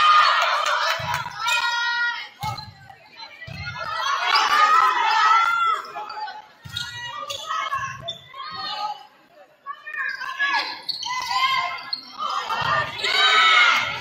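A volleyball is struck with sharp slaps that echo in a large hall.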